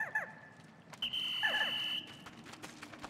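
A shrill whistle blows briefly.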